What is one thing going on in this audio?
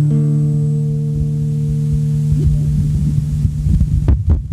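A guitar chord rings out and slowly dies away.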